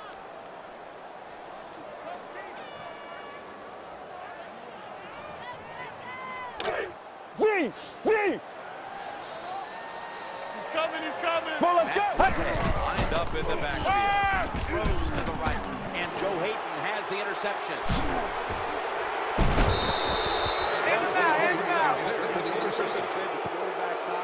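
A stadium crowd roars, swelling louder as the play goes on.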